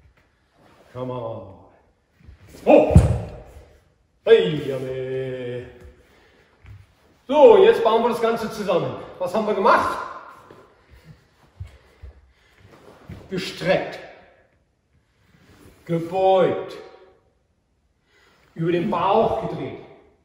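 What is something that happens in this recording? An older man speaks and calls out in short bursts in an echoing hall.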